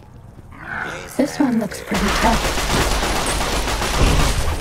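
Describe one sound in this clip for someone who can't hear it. A creature snarls and growls close by.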